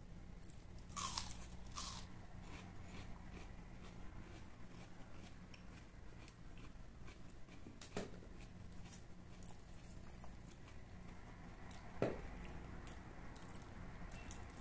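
Crispy chicken skin crackles as it is torn by hand.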